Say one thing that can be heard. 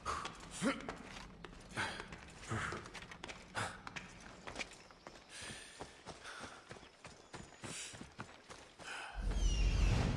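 Footsteps crunch quickly through grass and over rock.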